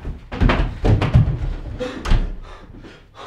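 Footsteps thud on a floor.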